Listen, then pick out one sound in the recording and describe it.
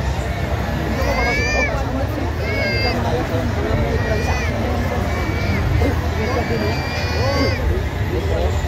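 A rooster crows several times nearby.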